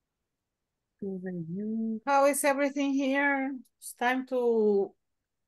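A middle-aged woman speaks calmly over an online call.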